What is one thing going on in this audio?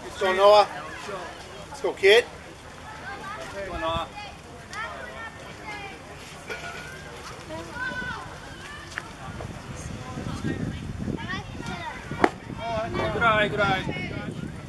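Young women shout and chant encouragement across an open field.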